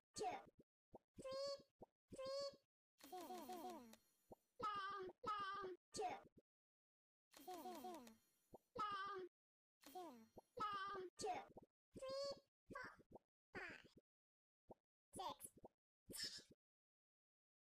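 Cartoon characters chirp and squeak in high, playful voices.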